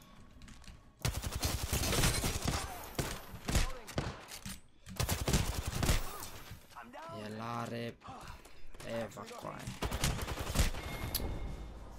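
Gunfire bursts rapidly and loudly in quick volleys.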